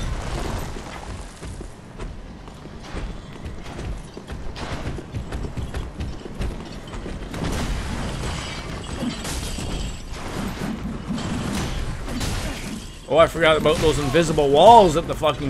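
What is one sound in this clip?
Sword blows clang and thud during a fight.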